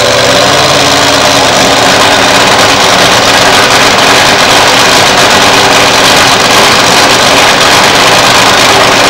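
A nitro-fuelled dragster engine idles with a loud, harsh rumble.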